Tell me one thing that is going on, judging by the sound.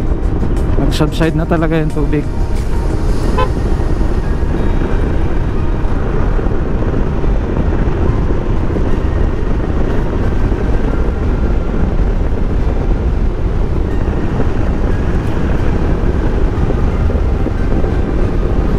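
Wind rushes and buffets loudly against the microphone while riding.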